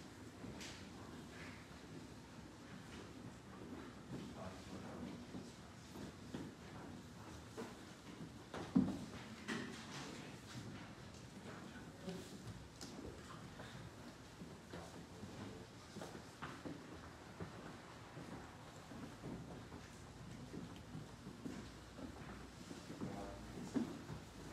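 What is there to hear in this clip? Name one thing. Footsteps shuffle on a wooden floor.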